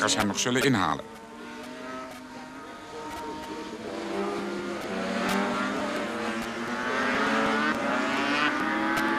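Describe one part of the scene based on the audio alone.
Motorcycle engines drone in the distance and grow louder as the bikes approach.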